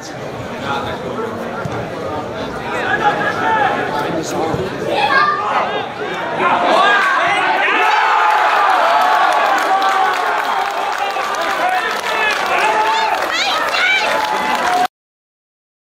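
A crowd cheers and shouts in an open stadium.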